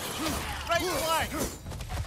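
Flames burst out with a roaring whoosh.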